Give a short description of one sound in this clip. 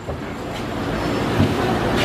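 A knife chops through meat on a board.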